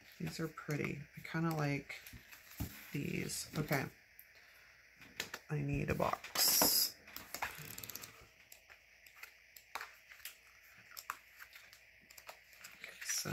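Stiff paper pages rustle and flap as they are turned.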